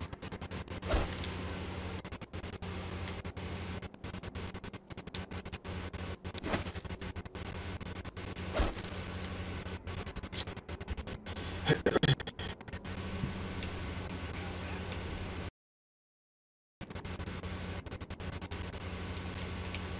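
Short soft clicks sound now and then, as in a game menu.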